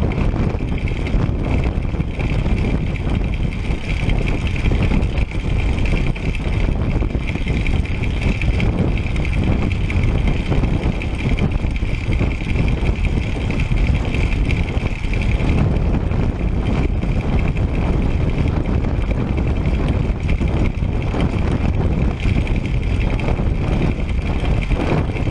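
Bicycle tyres hum on an asphalt road.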